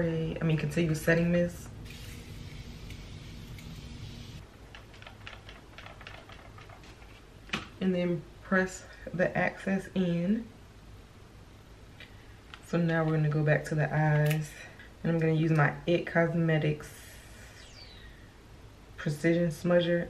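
A young woman talks calmly and close to a microphone.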